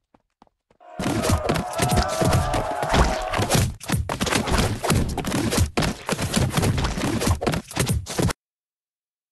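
Rapid game thumps and splats sound as a crowd is knocked down.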